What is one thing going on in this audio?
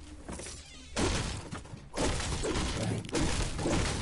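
A pickaxe strikes wood with heavy thuds.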